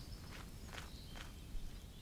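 Footsteps tread softly on a dirt path.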